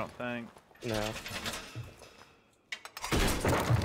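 A metal panel clanks and rattles as it is locked into place.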